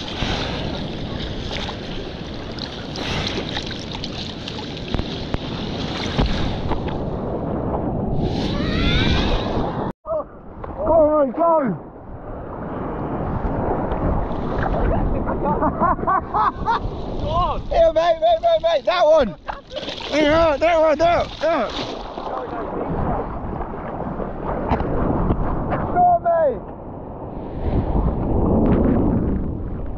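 Sea water splashes and sloshes close by.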